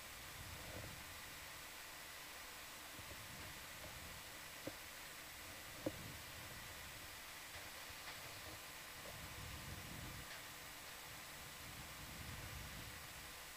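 Water rumbles and swirls, heard muffled from underwater.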